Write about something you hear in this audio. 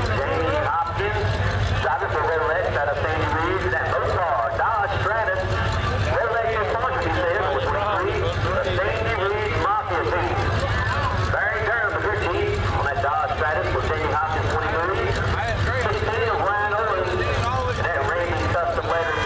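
Race car engines idle and rumble steadily nearby.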